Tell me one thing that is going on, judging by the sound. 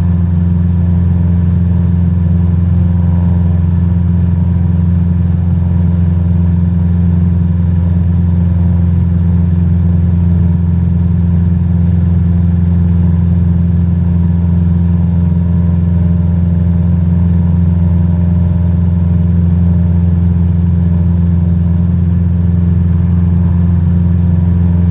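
A small propeller plane's engine drones steadily and loudly.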